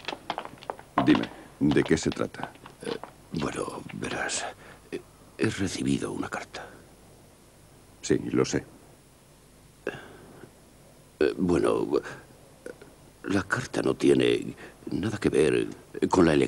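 A man speaks in a low, urgent voice close by.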